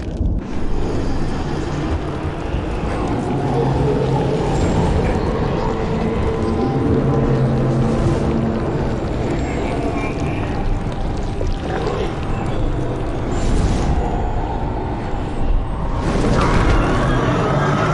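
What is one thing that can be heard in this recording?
Magic sparks crackle and fizz.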